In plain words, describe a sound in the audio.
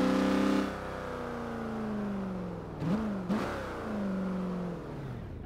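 Tyres rumble over a dirt road.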